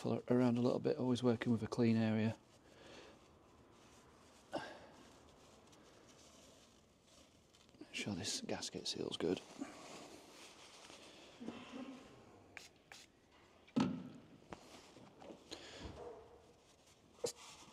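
A cloth rubs against metal.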